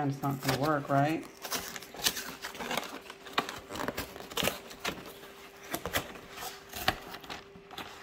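Cardboard flaps tear and rip open.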